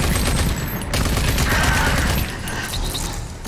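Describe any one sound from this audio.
A rapid-fire gun shoots in short bursts.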